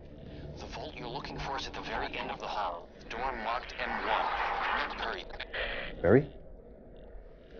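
A middle-aged man speaks urgently and tensely, close by.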